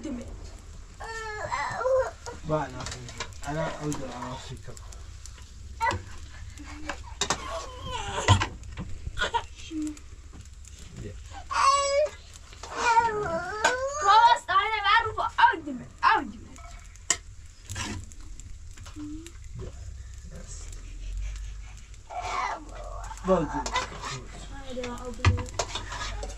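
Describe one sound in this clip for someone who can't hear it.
A ladle scrapes and clinks against a metal pot.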